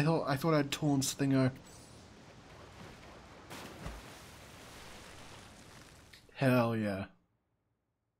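Wind roars and swirls.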